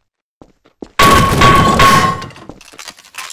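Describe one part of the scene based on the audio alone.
A metal crowbar clangs loudly against a metal shelf.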